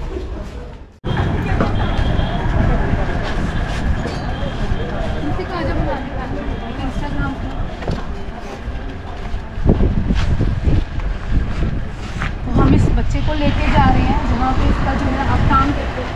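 Street traffic hums and rumbles outdoors.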